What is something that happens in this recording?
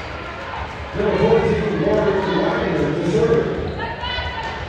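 A crowd of players and spectators cheers and shouts loudly.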